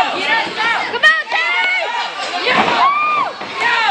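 A body slams hard onto a wrestling mat with a thud.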